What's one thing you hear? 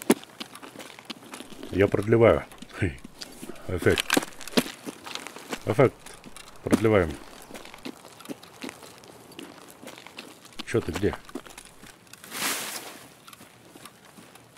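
Footsteps crunch on gravel and grass.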